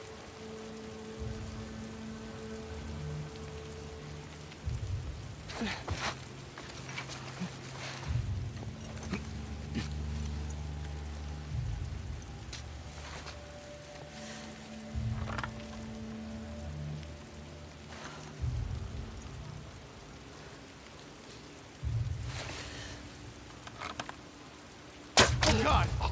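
Tall grass rustles softly as someone crawls through it.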